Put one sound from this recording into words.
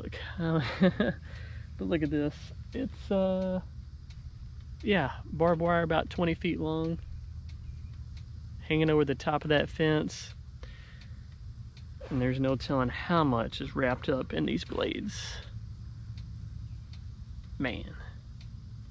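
A man talks calmly and clearly to a listener nearby, outdoors.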